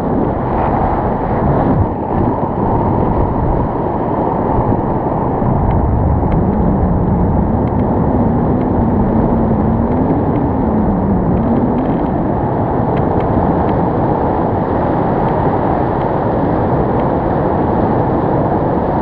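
Strong wind rushes loudly past the microphone throughout.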